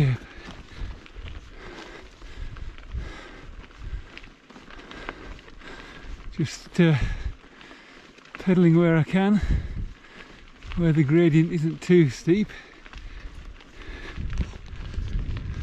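Footsteps crunch on a gravel track.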